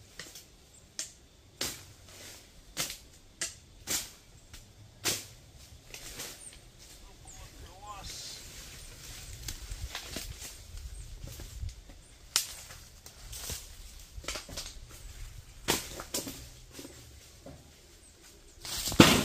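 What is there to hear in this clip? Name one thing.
Wood and sheet metal knock and clatter nearby.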